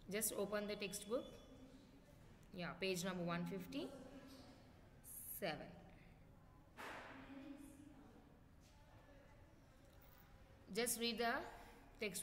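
A young woman speaks calmly and slowly, close to a microphone, with pauses.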